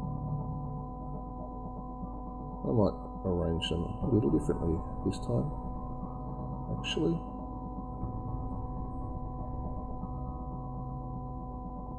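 Metal tweezers tap softly on paper.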